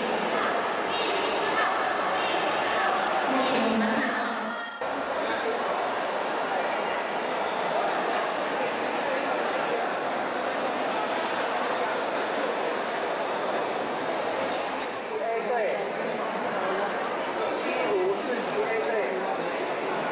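A crowd of people chatters loudly in an echoing indoor hall.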